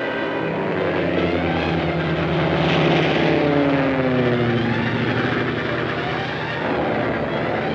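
A propeller plane's engine drones steadily and its pitch drops as it passes overhead.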